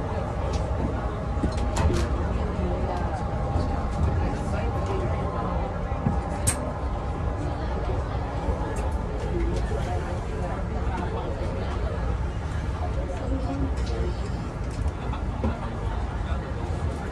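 The bus body rattles and clicks over bumps.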